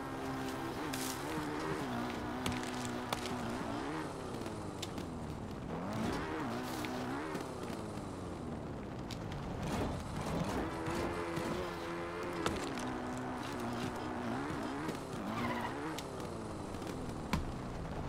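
A horse gallops over grass and rock, hooves thudding quickly.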